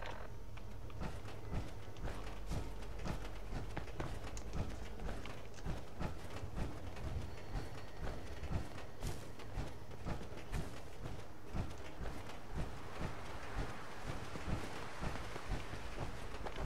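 Heavy metal footsteps thud steadily on the ground.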